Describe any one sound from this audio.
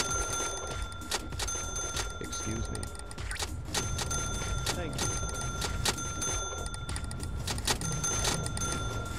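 A checkout scanner beeps repeatedly.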